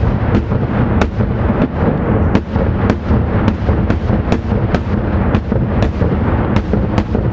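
Fireworks rumble in a deep, constant roar.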